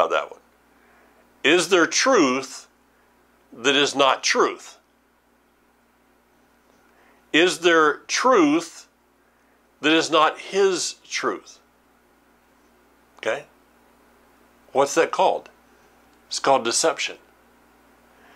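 An older man speaks calmly and clearly into a close microphone, in short phrases with pauses.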